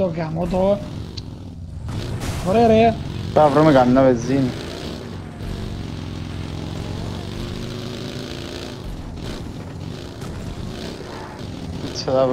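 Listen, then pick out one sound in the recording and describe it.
A small off-road buggy engine drones steadily as it drives over rough ground.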